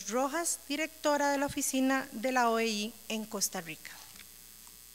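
A young woman speaks calmly into a microphone in an echoing hall.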